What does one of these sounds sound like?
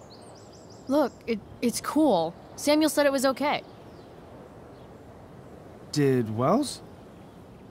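A young woman speaks calmly and casually.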